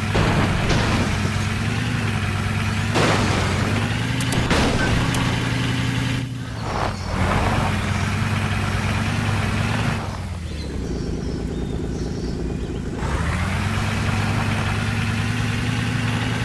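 Tyres crunch over dry gravel and grass.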